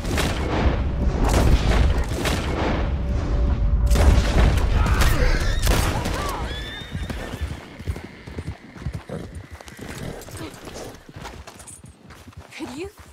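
A horse gallops with hooves pounding on the ground, then slows to a walk.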